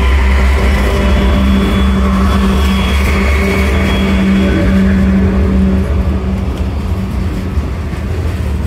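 A diesel locomotive rumbles past close by with a loud droning engine.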